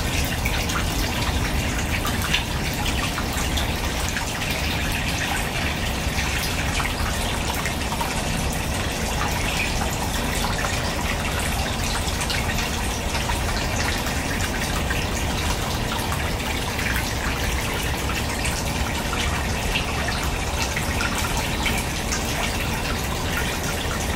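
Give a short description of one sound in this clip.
Fish gulp and slurp at the water's surface.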